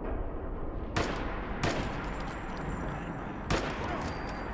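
Rifle shots crack loudly.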